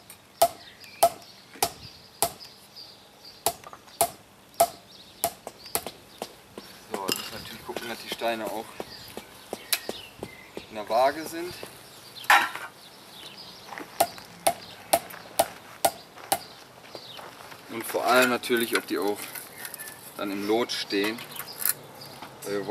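A rubber mallet taps sharply on stone, again and again.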